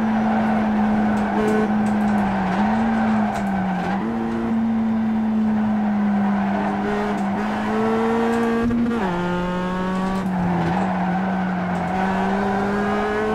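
A racing car engine drones steadily through speakers, rising and dropping in pitch as gears shift.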